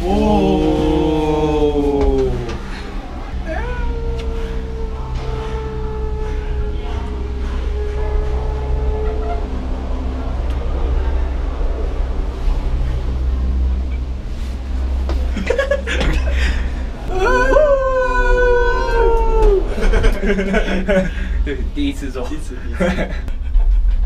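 A cable car hums steadily as it moves.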